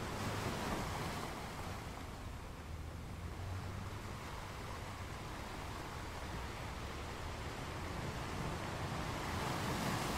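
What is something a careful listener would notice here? Water washes and swirls over a rocky shore.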